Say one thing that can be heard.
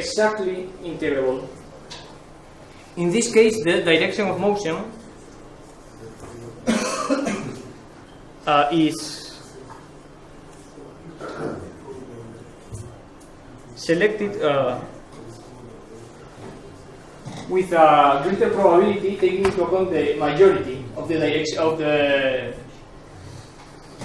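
A man lectures in a room that echoes a little, speaking calmly with pauses.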